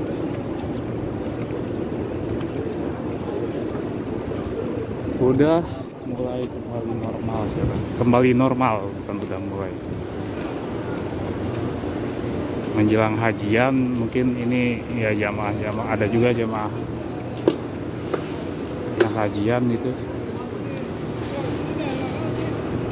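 A busy crowd murmurs outdoors on a street.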